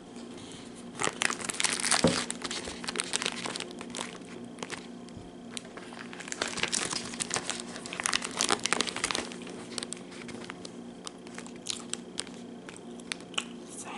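Plastic packaging crinkles and rustles close to a microphone.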